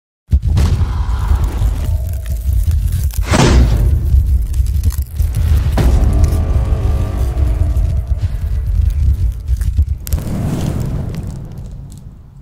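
A fire roars and whooshes.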